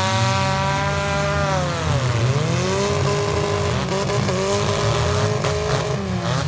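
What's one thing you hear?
Car engines roar and rev loudly, rising and falling in pitch.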